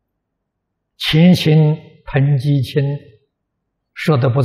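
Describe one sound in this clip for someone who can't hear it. An elderly man speaks calmly and warmly into a close microphone.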